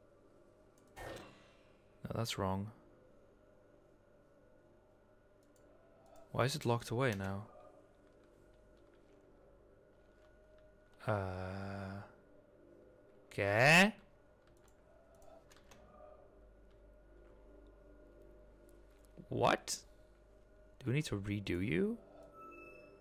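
Short electronic chimes ring out again and again.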